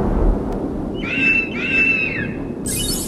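An eagle screeches twice.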